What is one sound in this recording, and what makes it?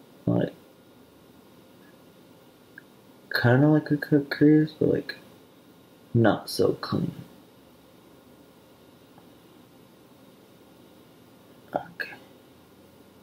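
A young man speaks calmly close by, in short bursts with pauses.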